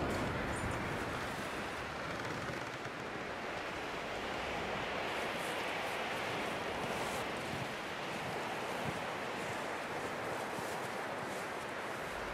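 Boots crunch through deep snow.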